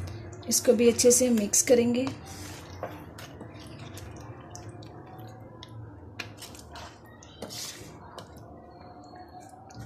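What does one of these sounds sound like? A wooden spoon scrapes and stirs food in a metal pan.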